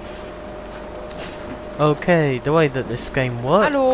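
Bus doors hiss open.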